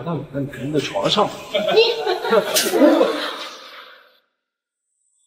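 A young woman speaks with a laugh.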